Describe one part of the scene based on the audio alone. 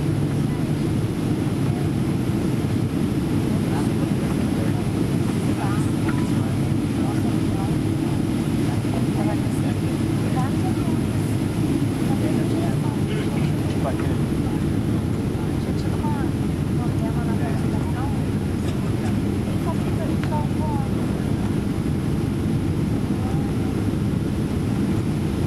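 Jet engines roar in a low, steady rumble inside an airliner cabin.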